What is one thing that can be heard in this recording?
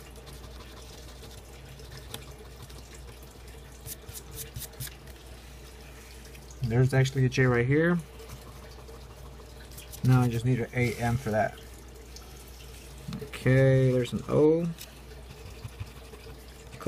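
A coin scratches across a scratch-off lottery ticket.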